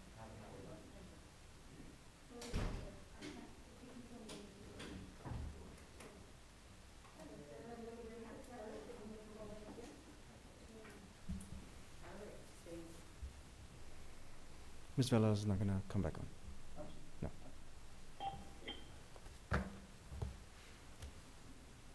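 A man and a woman talk quietly at a distance in a large room.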